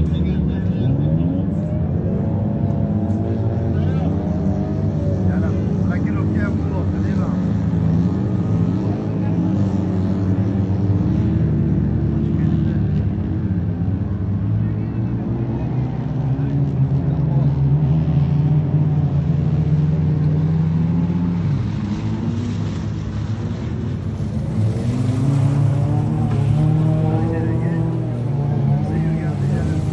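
Rally car engines roar and rev across open ground.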